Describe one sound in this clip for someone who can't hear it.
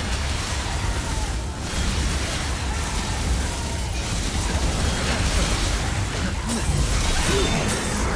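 Electric bolts crackle and buzz.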